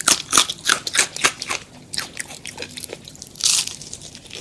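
Crispy fried chicken crunches loudly close to a microphone.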